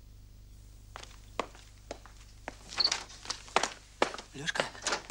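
Footsteps cross a wooden floor indoors.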